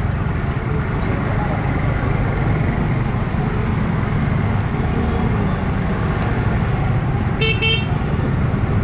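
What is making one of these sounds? A busy crowd murmurs outdoors.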